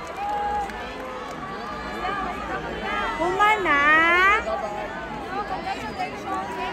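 A crowd of people sings along and cheers nearby.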